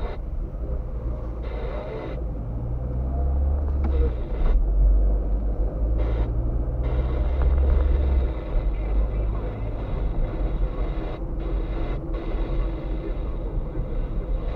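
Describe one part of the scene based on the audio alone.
A car engine hums steadily from inside the car while driving, rising and falling with speed.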